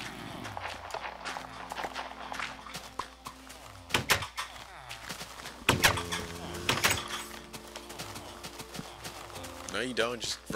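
Blocks of dirt and stone crunch as they are dug out, one after another.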